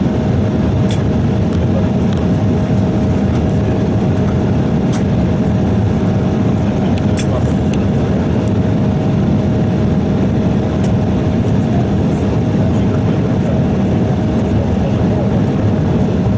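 A jet engine hums steadily, heard from inside an aircraft cabin.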